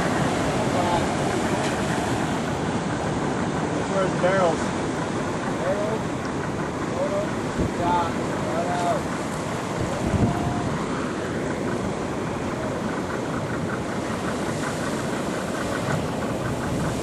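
Ocean waves roll and break with a steady rushing wash.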